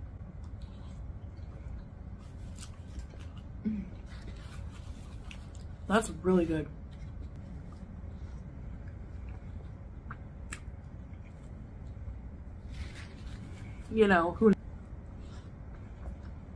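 A woman chews and slurps noodles close by.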